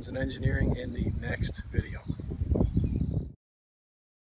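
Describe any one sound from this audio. A man talks calmly, close by.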